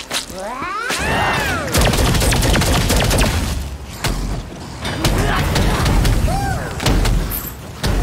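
Magic spells whoosh and blast with booming impacts.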